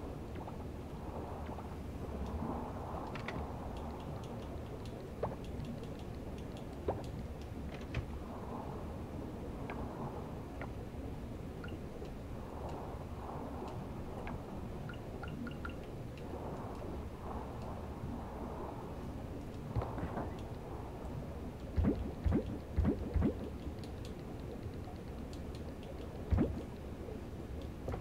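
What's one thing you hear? A man talks calmly and steadily close to a microphone.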